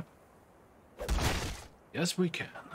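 A blade strikes a body with a heavy thud.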